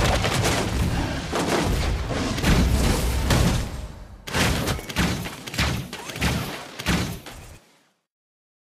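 Game spells whoosh and strike in quick bursts.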